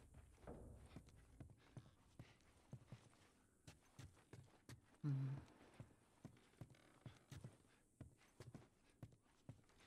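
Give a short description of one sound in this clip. Footsteps thud on wooden floorboards and stairs.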